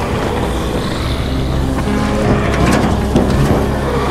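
A car trunk lid clunks open.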